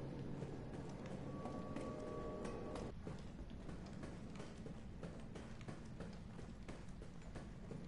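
Footsteps ring on a metal grating floor.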